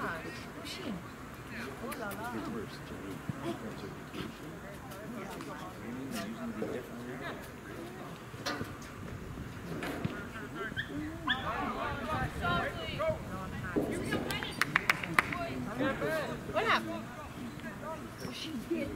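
Men and women talk nearby outdoors.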